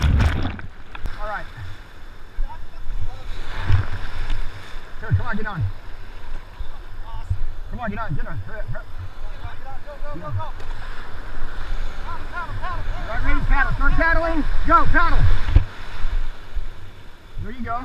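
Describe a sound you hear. A man talks nearby, outdoors over the surf.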